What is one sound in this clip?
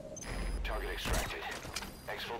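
A suppressed rifle fires a single shot.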